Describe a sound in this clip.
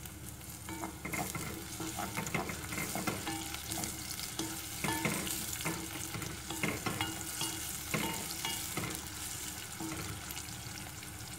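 A wooden spoon scrapes and knocks against a pot while stirring.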